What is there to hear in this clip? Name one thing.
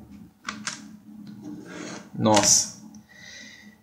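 A plastic disc case clicks and rattles as it is opened.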